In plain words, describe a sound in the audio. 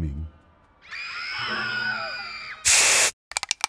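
A young boy cries out in alarm.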